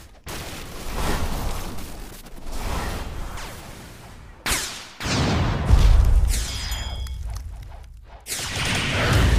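Magic blasts whoosh and boom in bursts, one after another.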